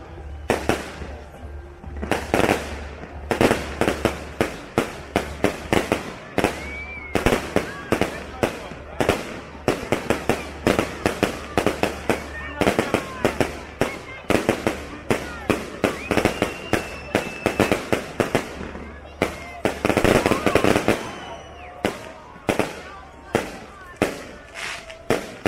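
Firework rockets whistle and whoosh as they shoot upward.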